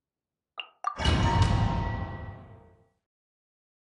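A whooshing transition sound swells and fades.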